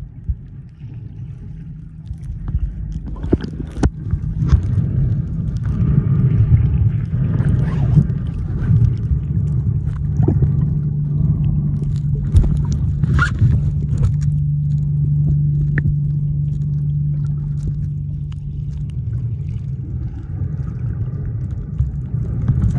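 Muffled underwater rumbling and bubbling fill the water.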